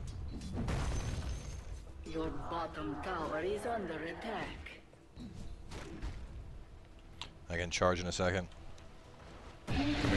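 Game spells whoosh and crackle with fiery bursts.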